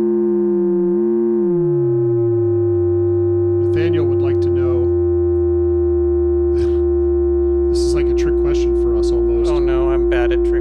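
A synthesizer drones with a steady tone that slowly deepens.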